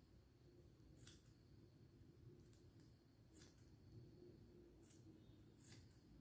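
A crochet hook softly rustles and ticks against yarn.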